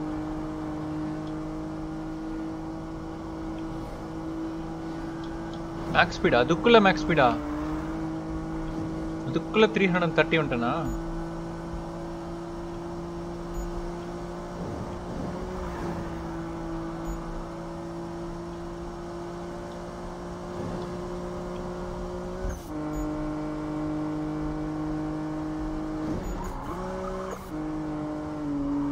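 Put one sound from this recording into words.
A car engine roars steadily at high speed.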